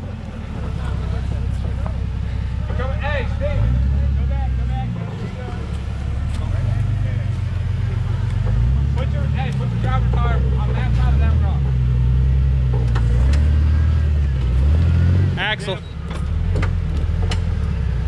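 An engine rumbles and revs unevenly.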